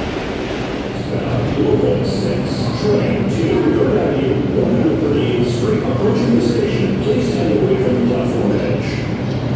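A subway train approaches with a rising roar and squealing wheels.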